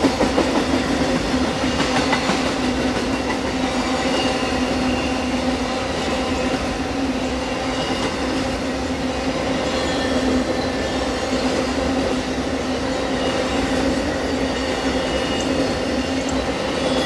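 A long train rumbles steadily past close by.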